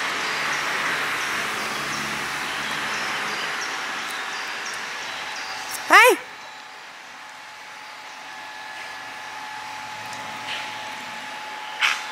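A stream flows gently nearby.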